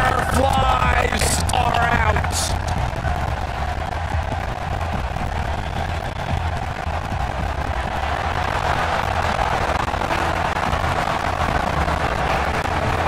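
A large crowd cheers and roars in a huge echoing arena.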